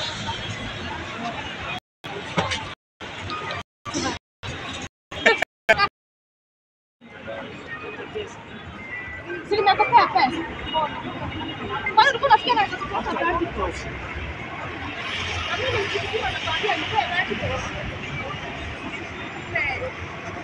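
A busy street crowd murmurs outdoors.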